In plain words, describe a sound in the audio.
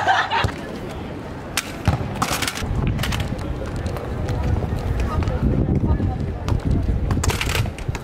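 A football thumps as it is kicked on pavement.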